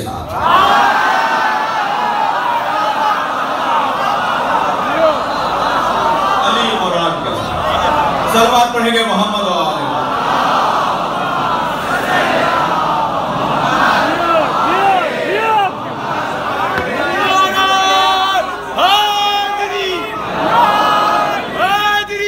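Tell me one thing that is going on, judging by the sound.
A man chants loudly and passionately through a microphone in an echoing hall.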